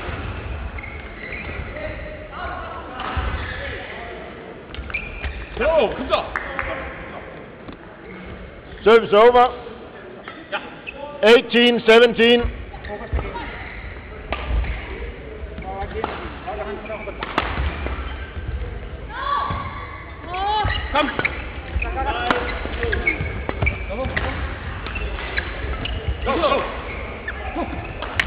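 Badminton rackets strike a shuttlecock with sharp pops.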